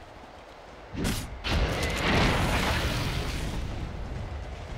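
An icy spell effect bursts and crackles in a video game.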